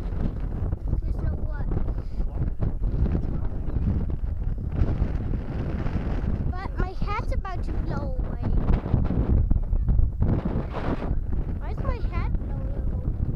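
A young child speaks close by in short bursts.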